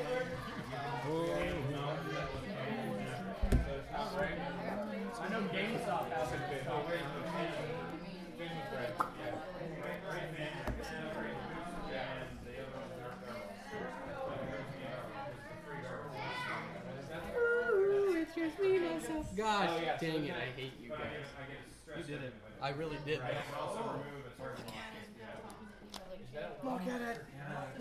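Playing cards slap and slide on a table.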